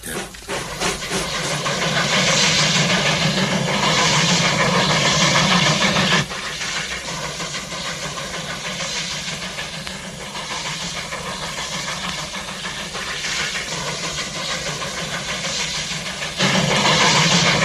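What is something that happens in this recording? A steam locomotive chugs steadily as a train rolls past outdoors.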